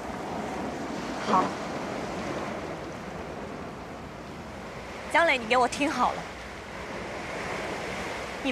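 Sea waves wash against rocks outdoors.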